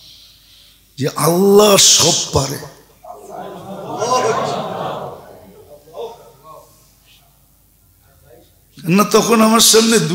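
An elderly man preaches with animation through a microphone in an echoing hall.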